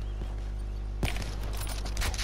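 A sniper rifle fires a single cracking shot.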